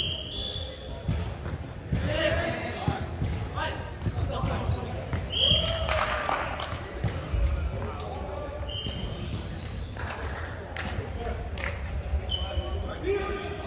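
Shoes squeak sharply on a wooden gym floor.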